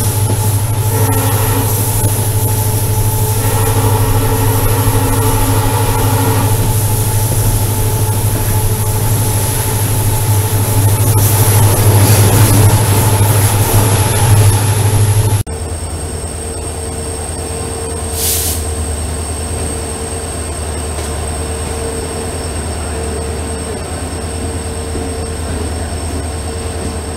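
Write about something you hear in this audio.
A diesel locomotive engine rumbles steadily nearby.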